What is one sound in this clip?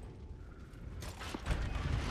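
A heavy wooden door rumbles and creaks as it is pushed open.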